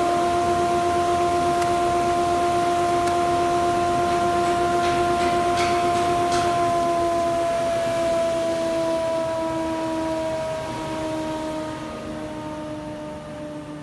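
A large machine hums steadily and slowly winds down.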